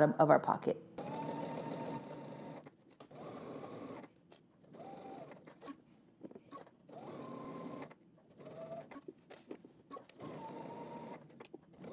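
A sewing machine whirs in short bursts as it stitches.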